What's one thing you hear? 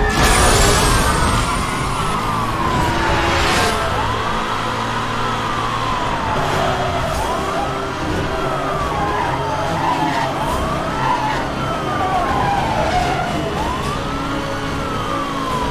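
A racing car engine roars at high speed, its pitch climbing and dropping with each gear change.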